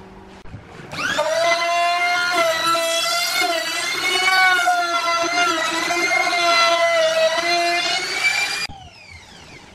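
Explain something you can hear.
A small trimmer router whines steadily while cutting wood.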